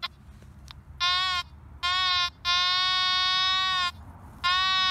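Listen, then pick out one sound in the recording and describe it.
A metal detector sounds a steady high-pitched tone.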